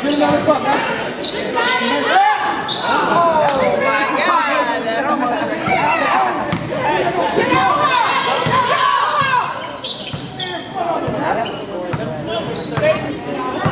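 Young women shout and cheer from close by in a large echoing gym.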